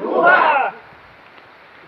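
A group of people shouts together.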